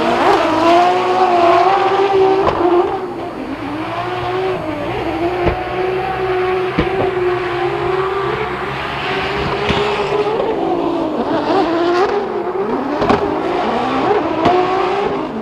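Tyres screech as cars slide sideways.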